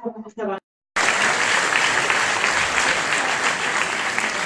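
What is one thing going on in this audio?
A woman speaks into a microphone over a loudspeaker in an echoing hall.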